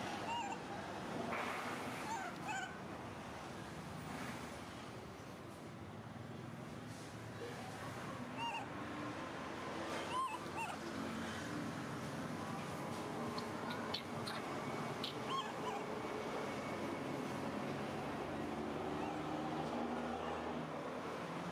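A baby monkey sucks noisily at a milk bottle.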